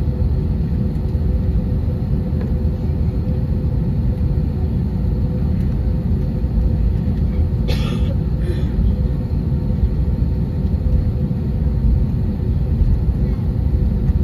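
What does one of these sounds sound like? The jet engines of an airliner rumble low, heard from inside the cabin as it taxis.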